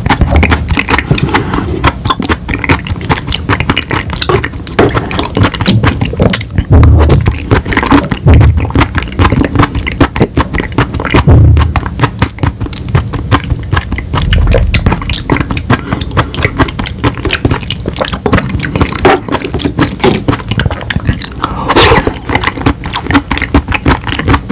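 A man chews and crunches candy close to a microphone.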